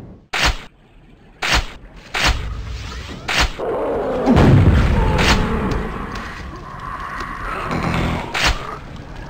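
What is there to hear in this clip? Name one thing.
A gun fires single loud shots.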